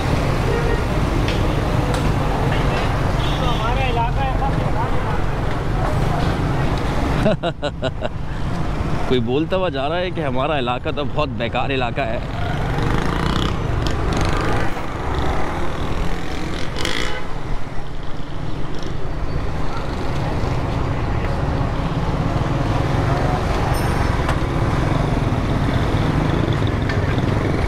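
Motorcycle engines rumble and buzz close by.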